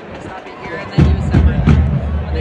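A marching band strikes up loudly with drums and brass.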